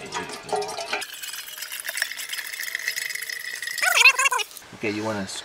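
Water pours from a bottle into a metal kettle.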